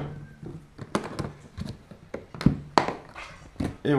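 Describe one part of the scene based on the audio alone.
Latches on a plastic case click.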